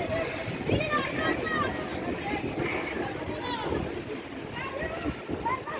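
Young women shout and call to each other across an open outdoor pitch.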